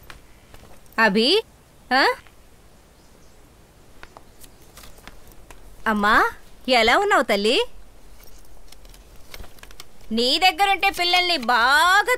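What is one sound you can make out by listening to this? A woman speaks loudly and with animation nearby.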